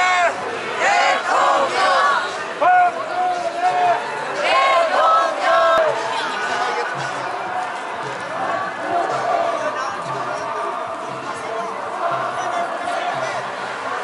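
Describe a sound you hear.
A crowd of marchers calls out and talks outdoors.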